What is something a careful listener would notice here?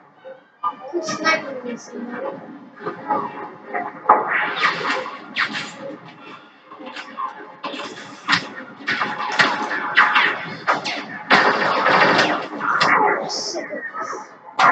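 Gunfire and explosions from a video game play through a television speaker.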